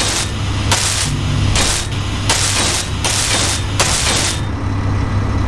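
A power tool grinds in short, hissing bursts.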